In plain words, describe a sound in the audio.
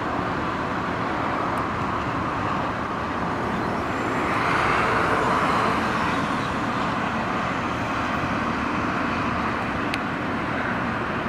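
A backhoe loader's diesel engine rumbles steadily close by.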